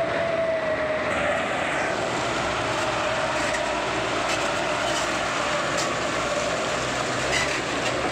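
A truck engine rumbles steadily nearby.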